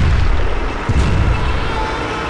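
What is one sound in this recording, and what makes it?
A shell explodes with a deep blast.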